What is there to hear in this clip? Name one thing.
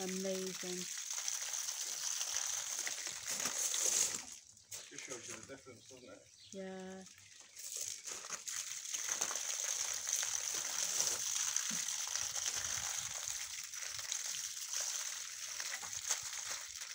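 Water pours from a watering can and splashes against a wall.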